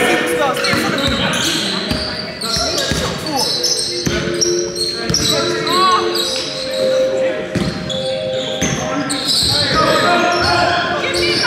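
Sneakers squeak sharply on the hall floor.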